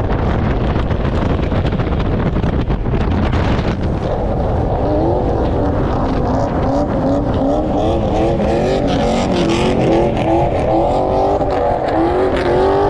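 Wind rushes loudly past an open car window.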